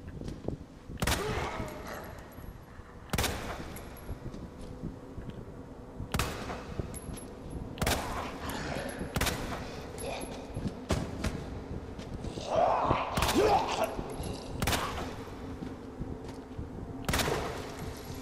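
Pistol shots ring out one at a time, sharp and echoing.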